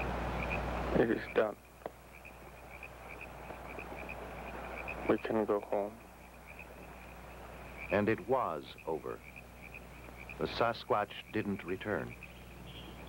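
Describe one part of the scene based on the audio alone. A man speaks quietly in short, low phrases.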